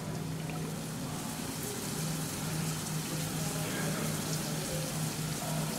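Shower water splashes steadily onto a tiled floor.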